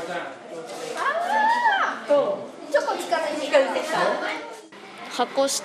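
A woman speaks cheerfully.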